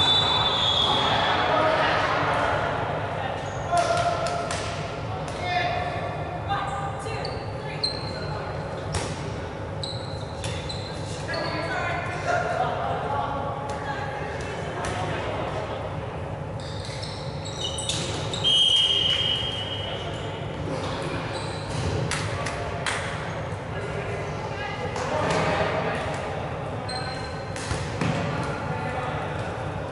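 Balls bounce and smack off players in a large echoing hall.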